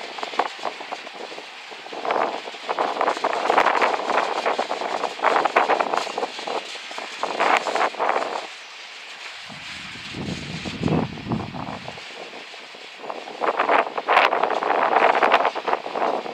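A freight train rolls past, its wheels clattering and squealing on the rails.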